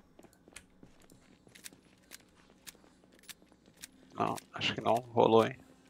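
Footsteps tap lightly on a floor.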